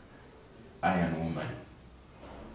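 A young man laughs softly nearby.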